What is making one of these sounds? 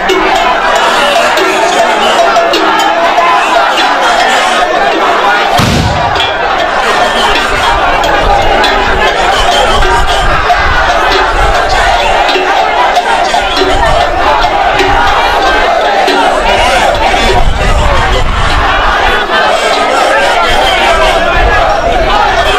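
A large crowd talks and cheers loudly outdoors.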